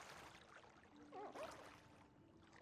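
A man groans with relief close by.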